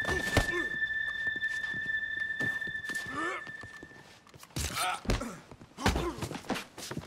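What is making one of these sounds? Fists thud against a body in a scuffle.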